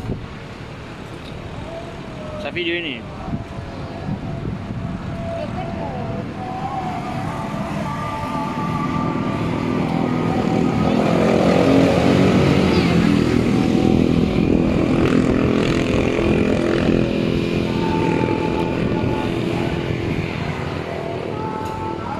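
Traffic rumbles past nearby outdoors.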